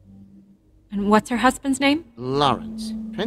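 A woman asks a question.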